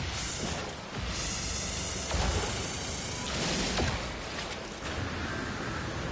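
A laser beam buzzes steadily as it cuts into rock.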